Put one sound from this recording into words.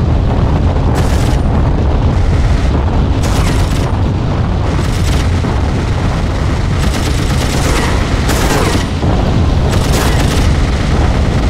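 A machine gun fires in short rattling bursts.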